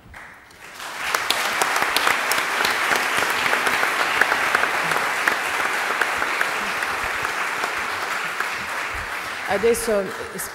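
An audience applauds in a large hall, then fades.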